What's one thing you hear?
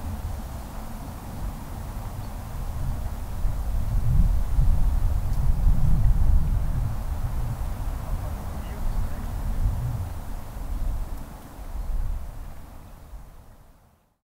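Wind gusts and rumbles outdoors, then fades away.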